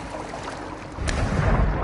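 Water gurgles and rushes as a swimmer dives under.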